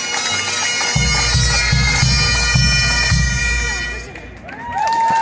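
A bass drum thumps along with bagpipes.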